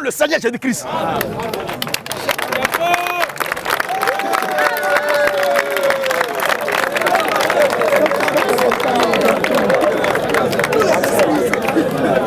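A crowd claps hands.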